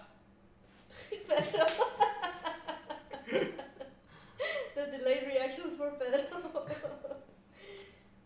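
A woman talks and laughs into a nearby microphone.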